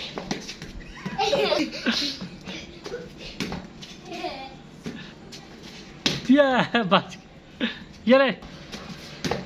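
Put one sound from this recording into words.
A young boy shouts excitedly, echoing off bare walls.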